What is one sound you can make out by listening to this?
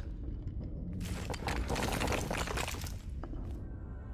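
A shimmering chime rings out as a glowing object is reached.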